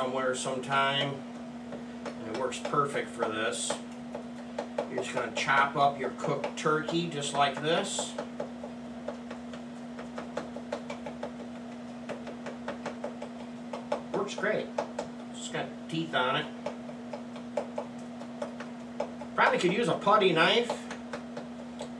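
A spoon scrapes and stirs food in a frying pan.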